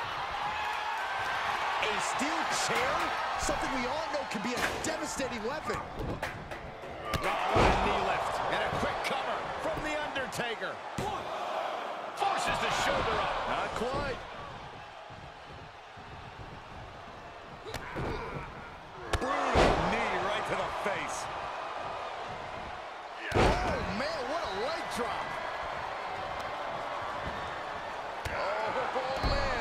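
A game crowd cheers and roars throughout.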